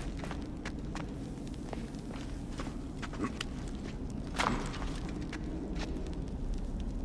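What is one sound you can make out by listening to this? Footsteps fall on a stone floor.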